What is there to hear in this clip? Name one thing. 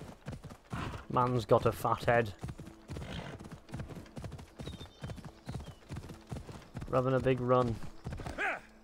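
A horse whinnies and snorts.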